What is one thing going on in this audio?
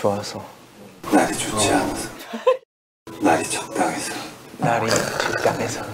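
Several young men laugh together.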